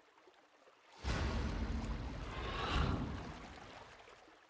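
A magical blast whooshes and rumbles loudly.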